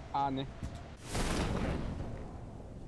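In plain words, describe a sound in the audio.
A parachute snaps open with a whoosh.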